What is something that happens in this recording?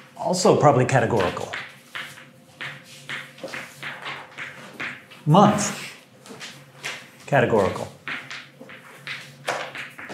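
A man talks, lecturing.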